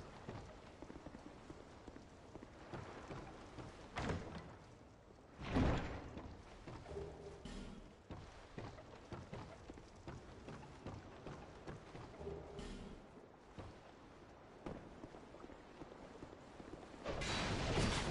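Heavy footsteps thud steadily on stone and wooden floors.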